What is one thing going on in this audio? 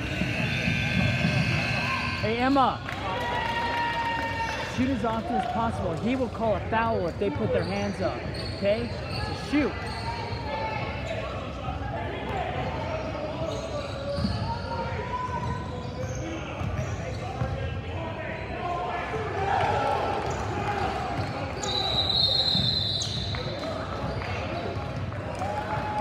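Young girls chatter and call out across the court.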